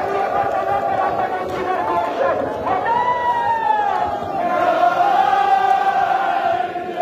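A large crowd of men chants loudly together in an echoing hall.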